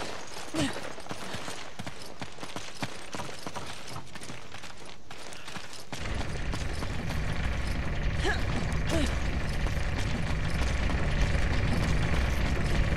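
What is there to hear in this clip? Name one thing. Footsteps crunch on dirt and wooden boards.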